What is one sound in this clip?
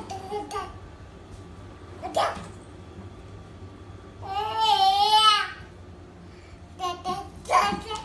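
A baby walker's wheels roll over a wooden floor.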